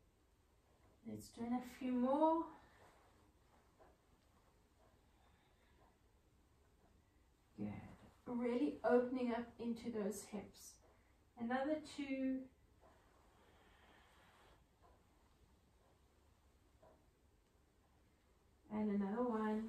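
A woman speaks calmly, giving instructions close to a microphone.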